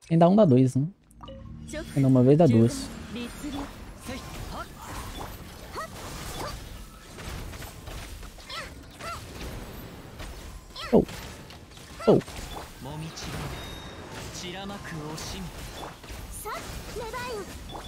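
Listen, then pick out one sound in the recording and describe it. Magical blasts and impacts crackle and boom in a video game.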